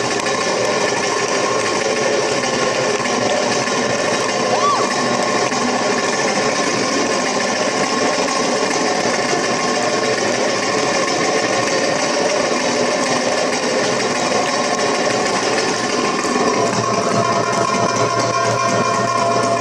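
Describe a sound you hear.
A hand drum beats out a quick rhythm.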